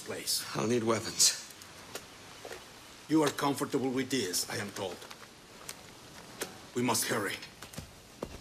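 A second man answers briefly in a rough voice.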